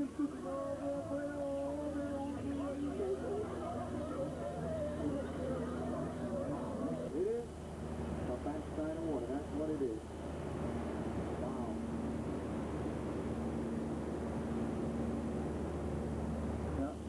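A boat engine hums steadily throughout.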